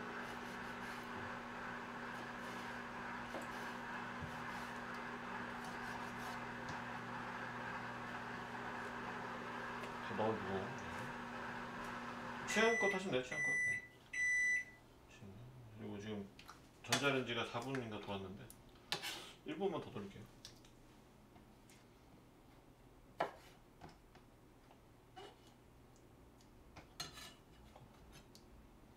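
A knife taps and scrapes on a cutting board.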